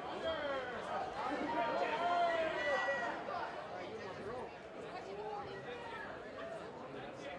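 A crowd of spectators shouts and cheers around a boxing ring.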